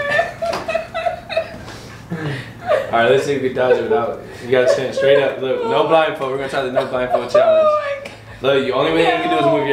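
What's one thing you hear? A young woman laughs and talks with animation nearby.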